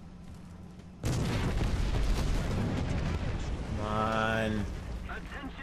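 A loud explosion booms and rumbles on.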